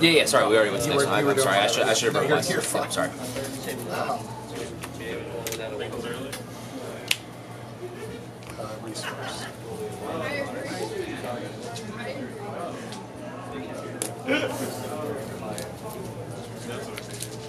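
Players shuffle cards in their hands.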